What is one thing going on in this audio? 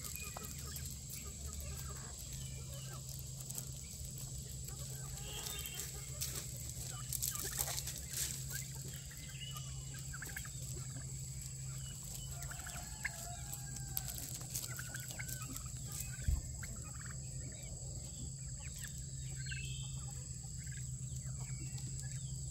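Chickens cluck and chirp softly outdoors.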